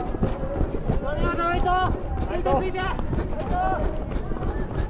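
People nearby call out and cheer.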